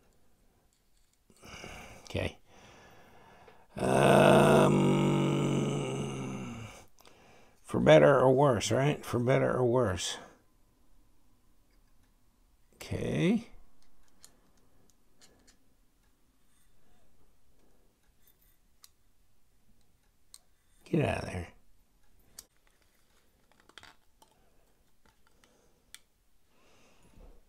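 Small metal parts click and tap softly against each other.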